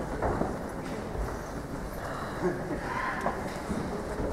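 A stage curtain slides shut.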